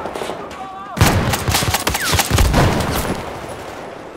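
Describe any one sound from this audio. Rifle shots fire in rapid bursts with loud cracks.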